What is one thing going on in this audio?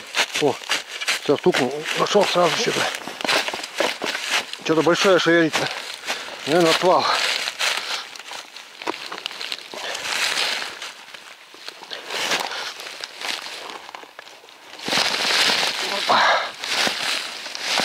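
Dry leaves crunch and rustle underfoot.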